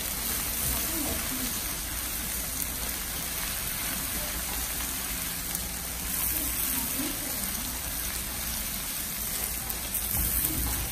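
Food sizzles steadily on a hot grill.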